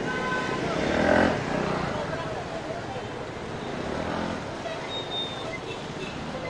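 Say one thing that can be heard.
Street traffic noise fills the air outdoors.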